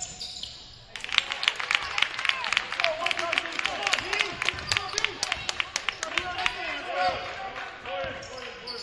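A crowd cheers and claps in a large echoing gym.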